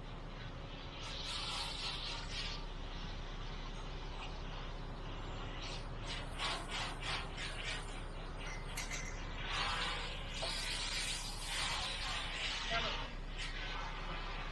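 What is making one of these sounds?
A trowel scrapes across wet concrete.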